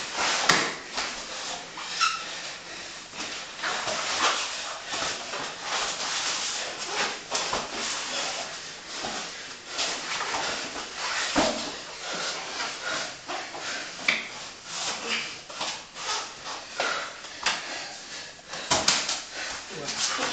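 Men breathe heavily and grunt while wrestling.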